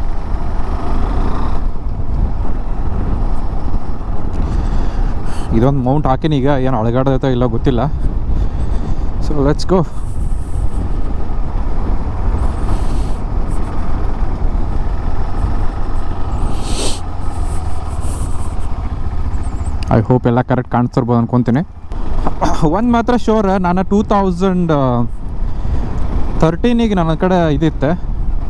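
A motorcycle engine hums and revs up, rising in pitch as it speeds up.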